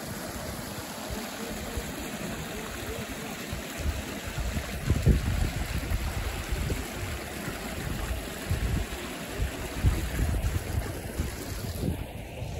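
A shallow stream rushes and gurgles over rocks close by.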